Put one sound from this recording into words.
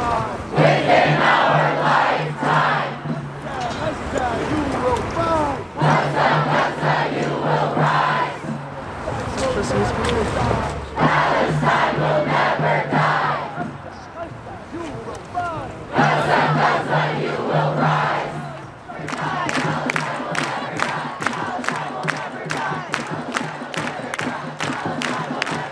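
A large crowd chants loudly together in repeated bursts outdoors.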